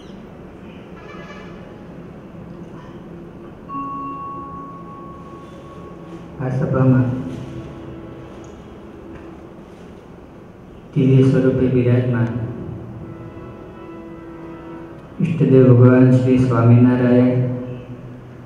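A young man sings in long held phrases through a microphone.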